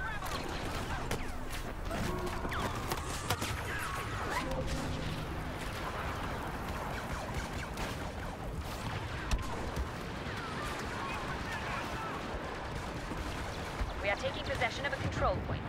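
Blaster shots zap and whine all around.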